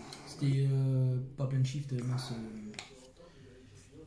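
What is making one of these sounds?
Trading cards slide against each other as they are shuffled by hand.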